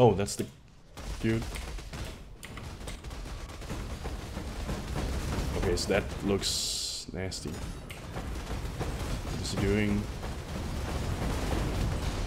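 Fiery spells roar and crackle in a video game.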